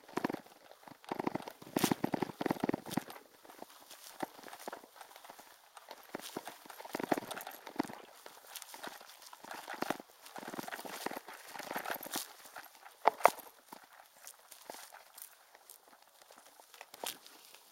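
A bicycle rattles and bumps over rough grass.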